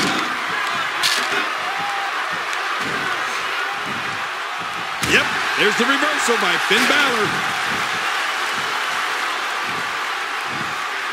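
A large crowd roars and cheers steadily in an echoing arena.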